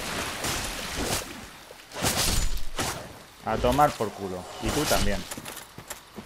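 A sword slashes and strikes a creature with heavy thuds.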